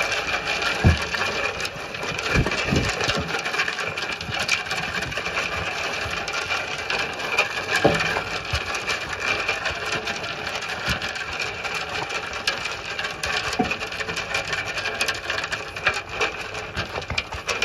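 Sheep munch and crunch feed up close.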